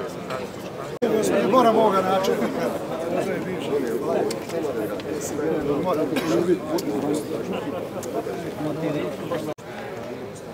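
People murmur quietly outdoors nearby.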